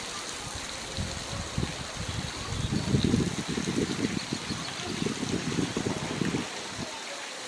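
A monkey splashes about in shallow water.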